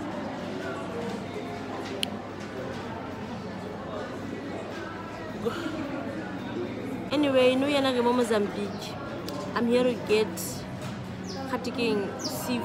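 A young woman talks casually and close up.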